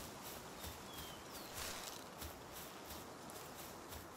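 A soft rustle sounds as berries are picked from a bush.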